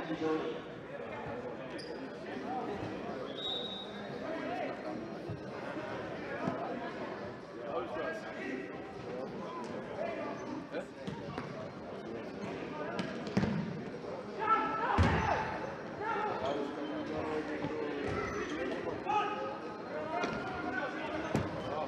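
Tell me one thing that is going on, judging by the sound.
Sneakers squeak on the hard floor.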